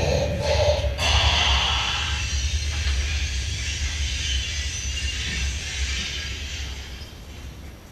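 Cymbals crash and wash, ringing out slowly.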